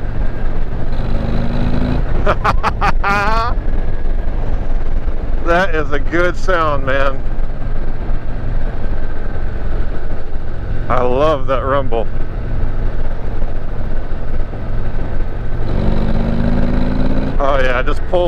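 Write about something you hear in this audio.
A motorcycle engine revs up briefly.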